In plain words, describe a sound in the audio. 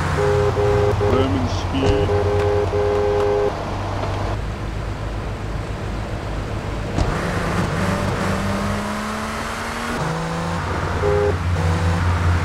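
A car horn honks in short blasts.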